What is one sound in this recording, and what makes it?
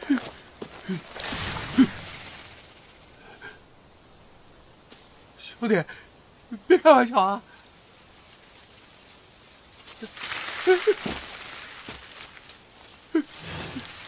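Dry reeds rustle as a man pushes through them.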